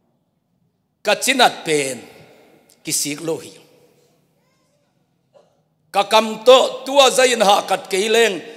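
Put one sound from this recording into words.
A middle-aged man speaks with animation through a microphone, in a reverberant room.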